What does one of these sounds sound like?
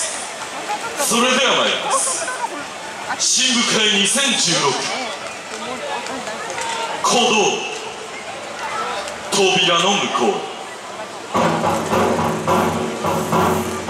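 A group of young women shout and chant together loudly outdoors.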